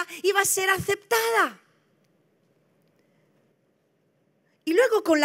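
A woman speaks with animation into a microphone, heard through loudspeakers in a large hall.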